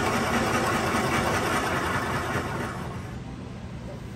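A chisel scrapes loudly against spinning wood.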